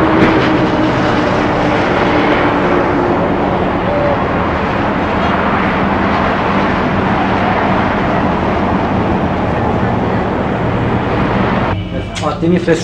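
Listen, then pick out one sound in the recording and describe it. Traffic rushes past steadily on a nearby road.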